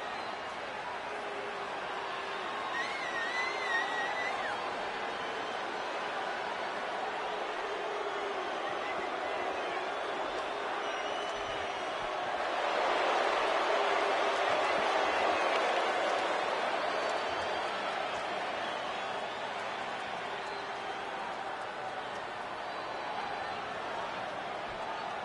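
A large crowd cheers and roars in a big open arena, swelling louder midway.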